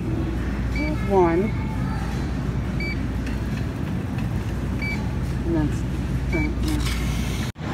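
A digital scale beeps briefly.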